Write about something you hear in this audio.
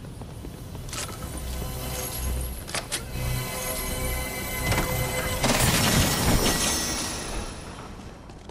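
A treasure chest opens with a rising, glittering chime.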